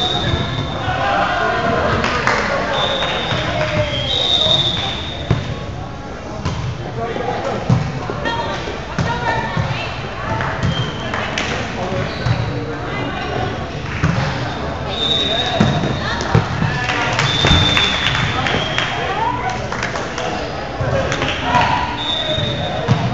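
Young men call out and shout to each other in a large echoing hall.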